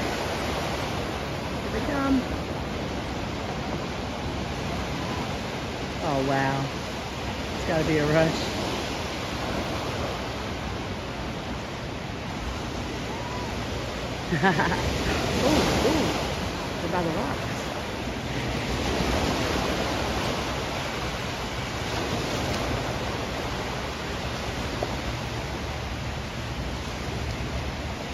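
Small waves wash and break steadily on a shore outdoors.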